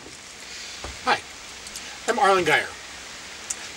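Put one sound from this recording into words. A middle-aged man speaks calmly outdoors.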